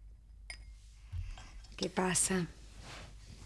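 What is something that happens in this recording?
A woman speaks briefly and softly nearby.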